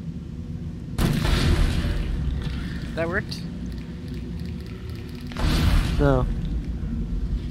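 A weapon fires with a loud, roaring blast.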